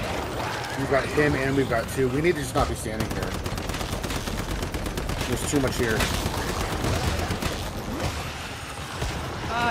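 Rapid gunfire bursts out in a video game.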